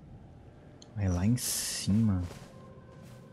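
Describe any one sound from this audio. A young man speaks briefly and calmly into a microphone.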